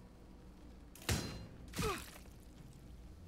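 A crossbow fires twice in quick succession.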